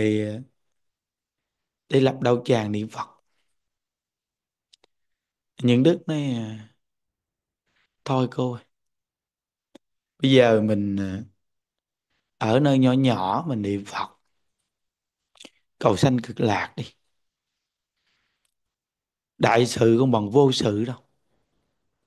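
An elderly man speaks calmly through a microphone in short phrases with pauses.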